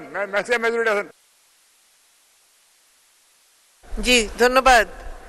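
An elderly man speaks forcefully into a microphone.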